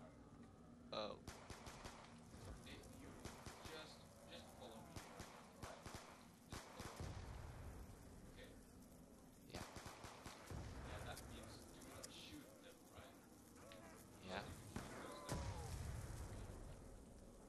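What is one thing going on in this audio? Guns fire in quick bursts of shots.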